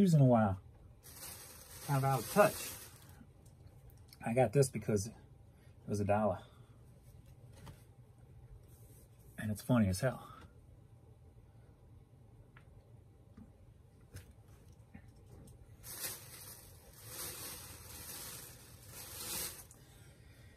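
Fabric rustles as a shirt is handled.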